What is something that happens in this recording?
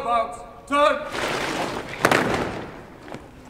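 Rifles clatter and slap in unison.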